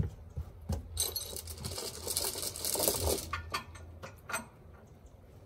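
A metal chain clinks and rattles.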